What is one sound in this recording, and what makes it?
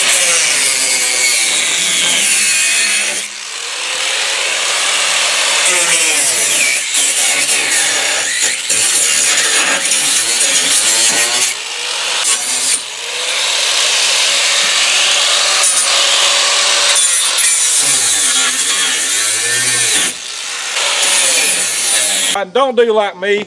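An angle grinder whines loudly as it cuts through metal.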